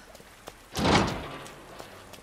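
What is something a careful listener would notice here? A chain-link gate rattles as it is pushed open.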